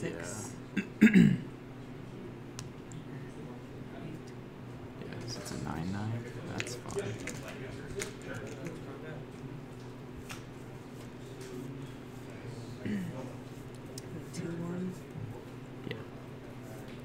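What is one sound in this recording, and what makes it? Playing cards tap and slide softly on a table.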